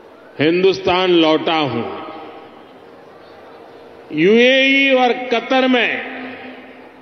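An elderly man speaks forcefully into a microphone over loudspeakers, his voice echoing.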